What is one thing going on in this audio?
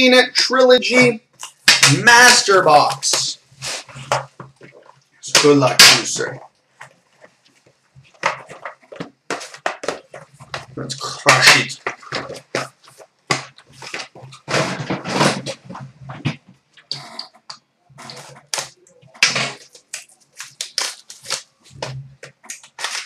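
Card packs rustle and crinkle in hands.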